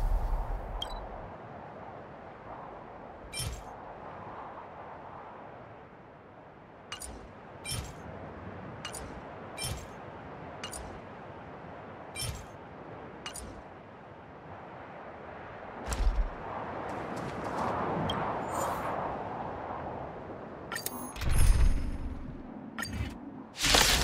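Short interface clicks tick now and then.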